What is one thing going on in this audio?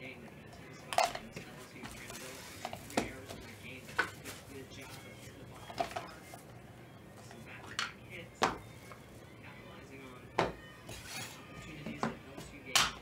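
A hard plastic case clicks and snaps shut.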